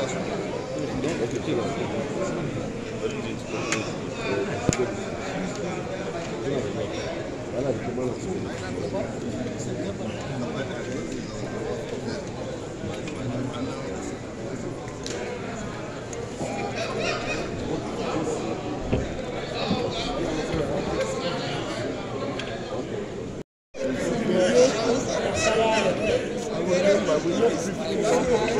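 A crowd murmurs and chatters in a large room.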